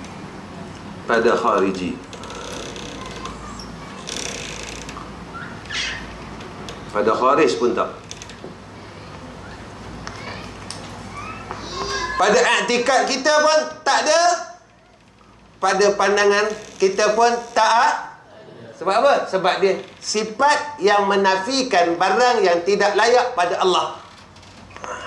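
A man speaks into a microphone, at first in short phrases, then with lively animation.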